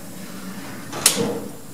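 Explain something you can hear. A metal door clanks shut.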